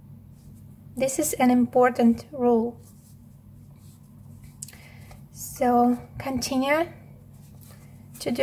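Yarn rustles softly as a crochet hook pulls loops through it.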